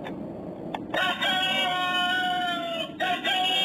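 A toy plays a tinny electronic melody up close.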